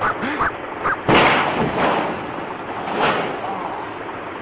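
A heavy load crashes down onto a car with a loud smash.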